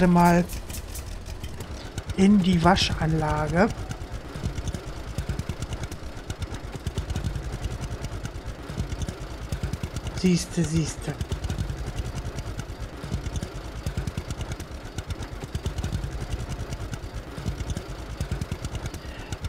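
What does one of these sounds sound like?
A tractor engine chugs steadily up close.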